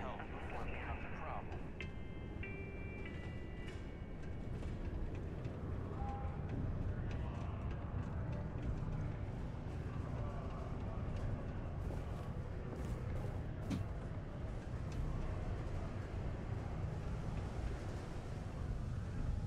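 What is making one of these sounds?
Footsteps tap on a hard metal floor.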